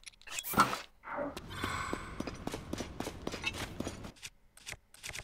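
Footsteps crunch on a dirt floor in an echoing cave.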